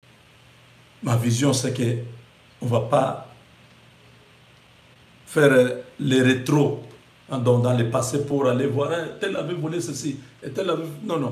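A man speaks with animation close to a microphone, with pauses between phrases.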